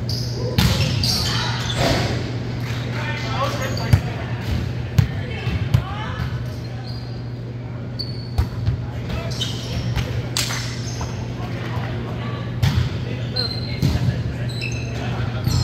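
Young men call out and chat in a large echoing gym.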